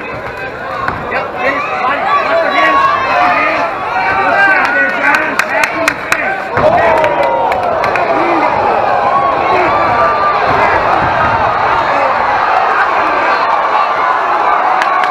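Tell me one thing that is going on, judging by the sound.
A crowd shouts and cheers loudly in a large echoing hall.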